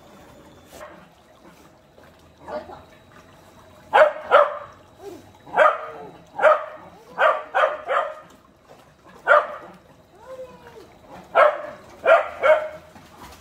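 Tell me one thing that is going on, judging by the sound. Water sloshes and splashes as a dog paddles.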